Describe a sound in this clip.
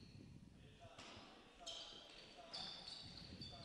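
Sneakers squeak on a wooden floor in an echoing gym.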